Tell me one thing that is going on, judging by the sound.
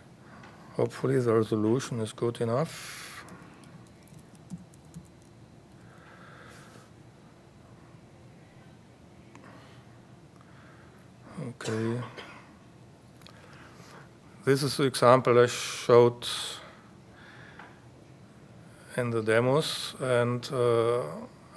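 A man speaks calmly into a microphone in short bursts, with long pauses.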